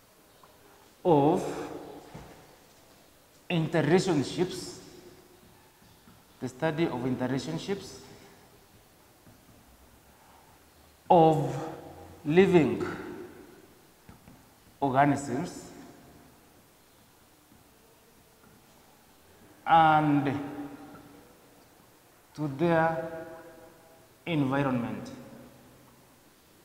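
A man speaks slowly in short phrases, pausing between them.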